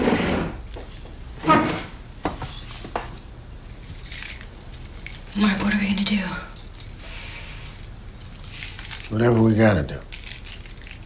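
A woman talks quietly and wearily nearby.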